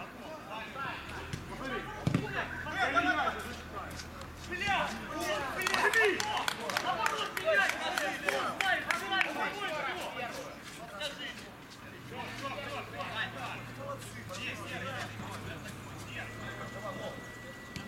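Men shout and cheer with excitement outdoors.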